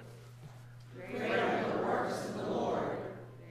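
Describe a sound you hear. A congregation reads aloud together, softly and at a distance.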